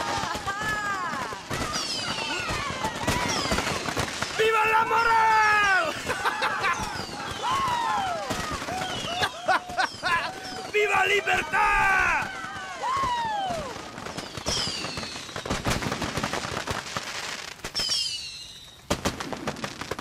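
Fireworks burst with loud bangs and crackles.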